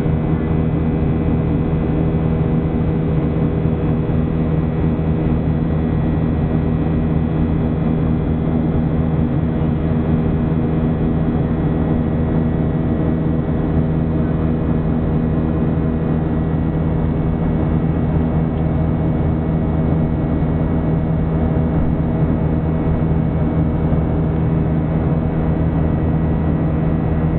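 A jet engine roars steadily close by, heard from inside an airliner cabin.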